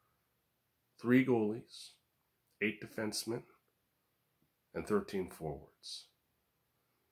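A middle-aged man speaks calmly and close to the microphone, in short bursts with pauses.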